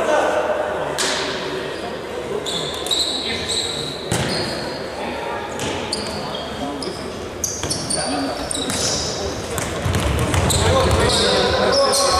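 A ball is kicked with dull thuds in an echoing hall.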